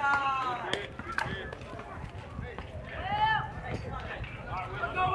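Young girls shout and cheer nearby outdoors.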